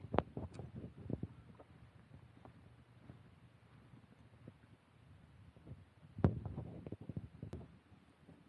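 Wind blows lightly outdoors.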